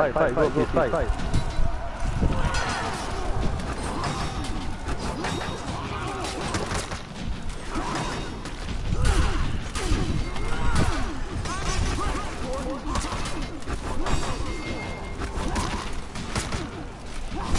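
Swords clash and clang repeatedly in a fight.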